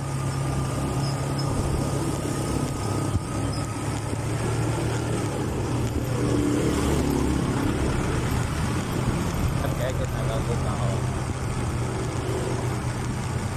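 A motorcycle engine hums steadily up close while riding.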